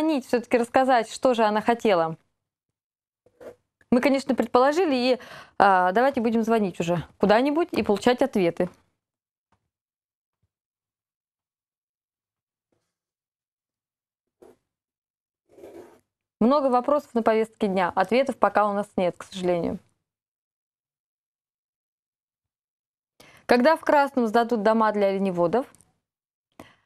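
A young woman speaks clearly and calmly into a microphone, with pauses between phrases.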